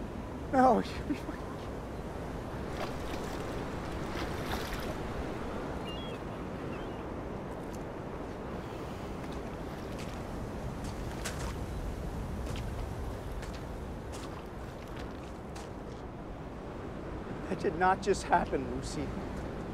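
Waves wash against rocks by the sea.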